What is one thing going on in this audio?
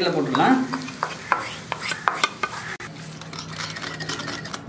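A fork clinks against a glass bowl as it stirs.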